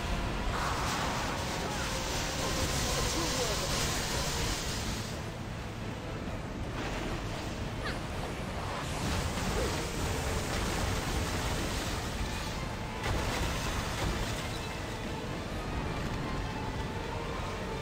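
Crashing waves of water roar loudly.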